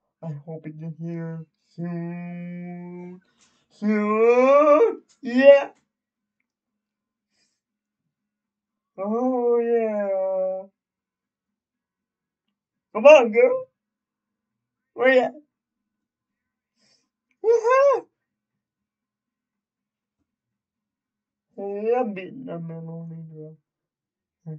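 A young man talks and sings loudly into a headset microphone, in bursts with pauses.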